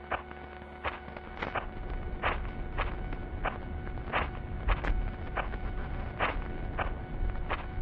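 Footsteps crunch steadily on dry leaves and twigs.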